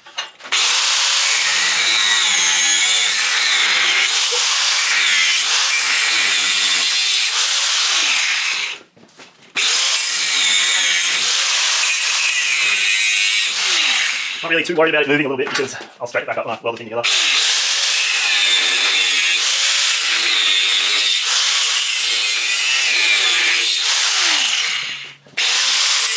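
An angle grinder whines loudly as it cuts and grinds metal.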